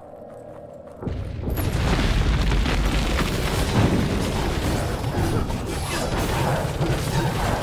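Magic spells burst and crackle in a loud, busy fight.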